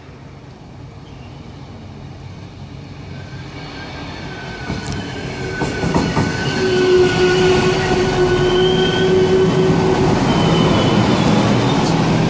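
A train approaches and rolls in, growing steadily louder.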